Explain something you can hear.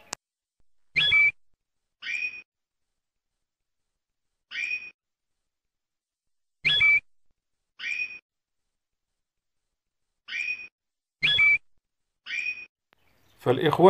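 A canary chirps in short, bright calls with pauses between them.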